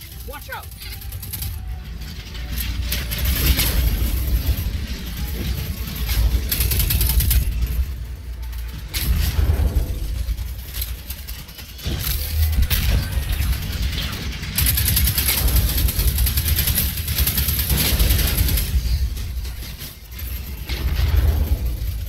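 Rapid gunfire and energy blasts crackle loudly.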